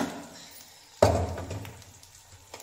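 A metal pressure cooker thumps down onto a stone counter.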